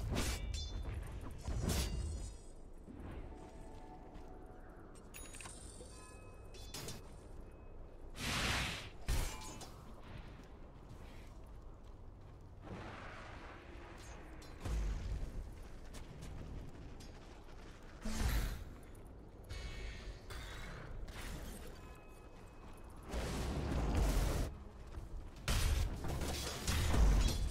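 Fantasy game combat sounds burst out with magic blasts and impacts.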